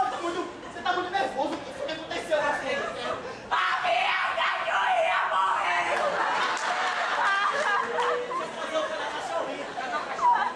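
Several young women talk and call out loudly in an echoing hall.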